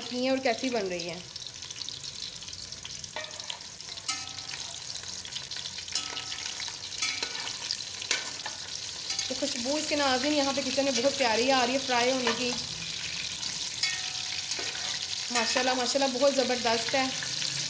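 Oil sizzles and bubbles steadily in a pan.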